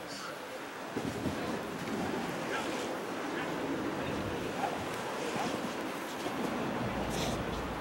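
Wind blows across a microphone outdoors.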